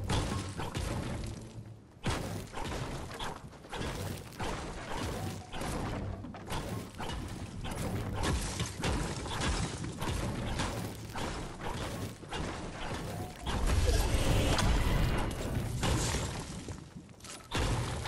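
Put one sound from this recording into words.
A pickaxe strikes stone and concrete again and again with sharp thuds.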